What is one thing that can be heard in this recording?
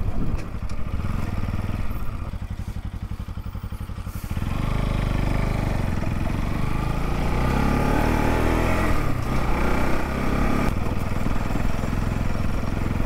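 A motorcycle engine putters at idle, then revs up and pulls steadily.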